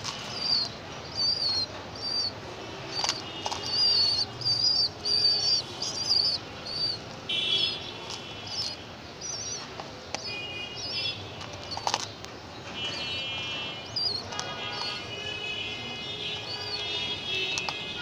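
Pigeons peck at seeds with sharp taps.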